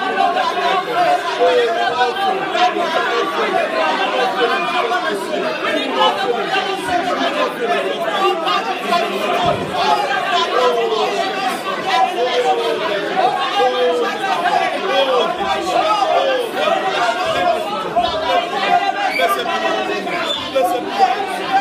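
A crowd of people chatters loudly and steadily in a room nearby.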